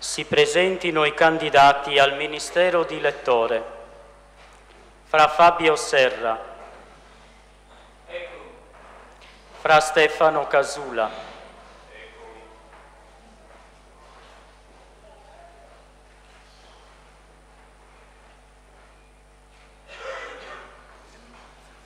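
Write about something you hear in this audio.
A man sings a chant through a microphone in a large echoing hall.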